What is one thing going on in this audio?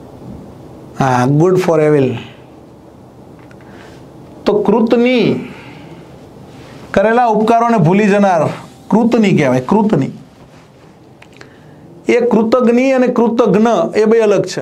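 A middle-aged man speaks with animation into a close microphone, in bursts with pauses.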